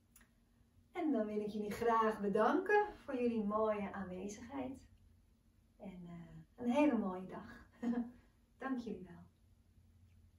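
A young woman speaks calmly and warmly, close by.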